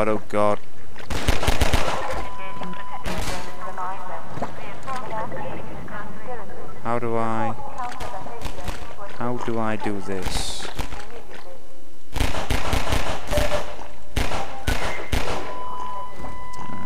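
Pistol shots ring out sharply, one after another.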